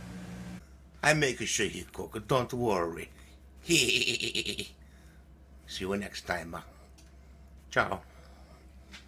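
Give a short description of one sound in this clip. A man speaks in a playful, exaggerated character voice close by.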